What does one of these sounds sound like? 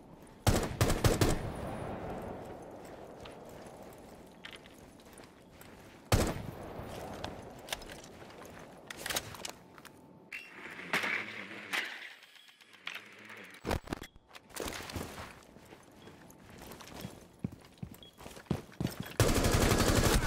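Gunfire rings out in short, sharp bursts.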